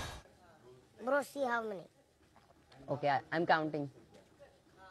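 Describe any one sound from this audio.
A young boy speaks with animation in a high voice.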